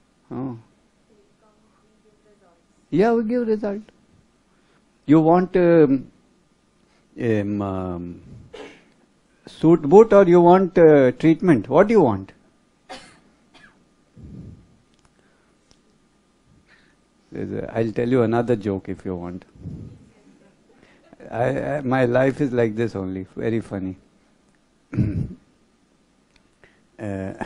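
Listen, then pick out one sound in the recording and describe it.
An older man speaks calmly in short bursts with pauses, heard clearly through a microphone.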